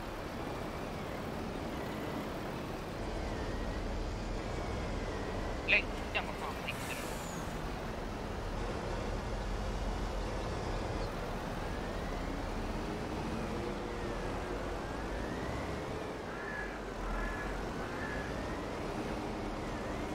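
A heavy loader's diesel engine rumbles and revs up and down.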